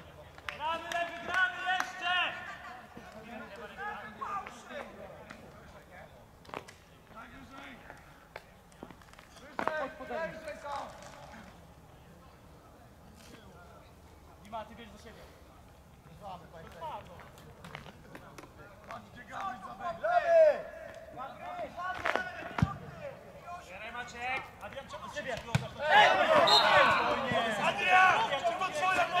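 Football players shout to each other across an open field outdoors.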